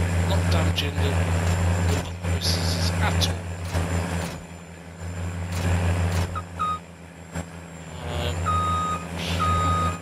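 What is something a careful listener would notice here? Branches scrape and rustle against a tractor.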